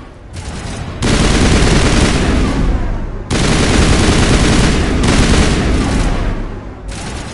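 Energy blasts burst loudly with a roaring rush.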